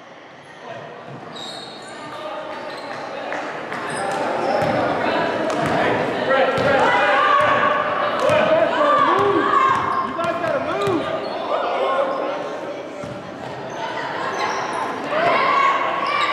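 Spectators chatter in an echoing gym.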